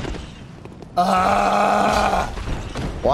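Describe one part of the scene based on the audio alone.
A heavy blade swings and strikes with a loud whoosh.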